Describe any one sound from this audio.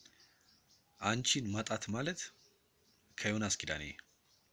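A young man speaks calmly and close up.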